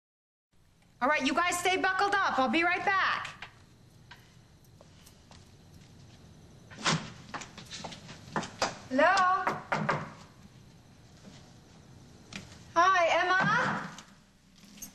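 A woman speaks with agitation, heard close.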